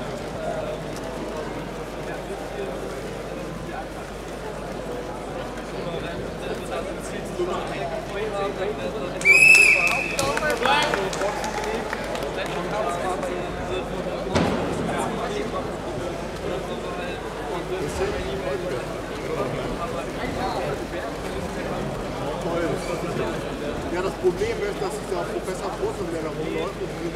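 A crowd of spectators murmurs and chats in an indoor hall.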